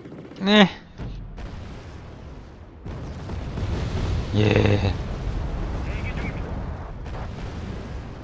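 Artillery shells explode with low, rumbling booms.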